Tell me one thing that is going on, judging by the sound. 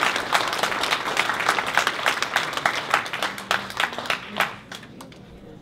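An audience claps in a large room.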